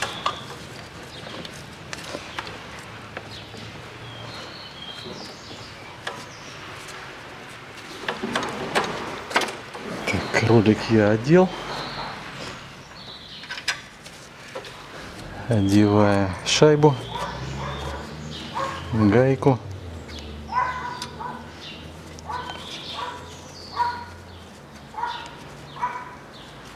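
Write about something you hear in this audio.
Metal engine parts click and clatter.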